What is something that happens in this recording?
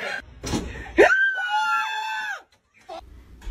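A man yells loudly in fright.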